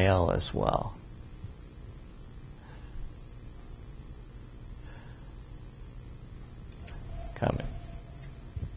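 An elderly man speaks briefly and calmly into a microphone.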